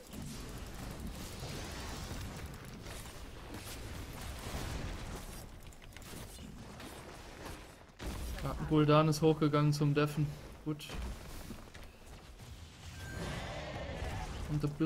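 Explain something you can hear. Game sound effects of fighting and spells clash and whoosh.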